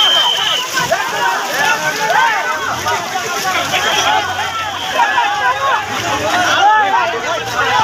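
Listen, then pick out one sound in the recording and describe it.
A crowd of men shout excitedly close by.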